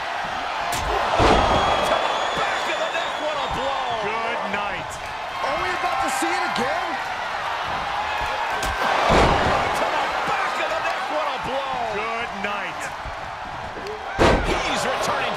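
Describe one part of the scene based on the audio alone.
Heavy bodies thud hard onto a springy mat.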